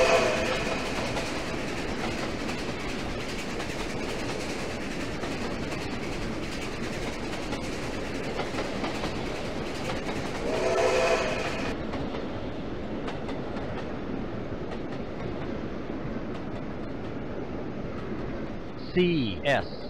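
A passenger train rumbles past on clattering rails.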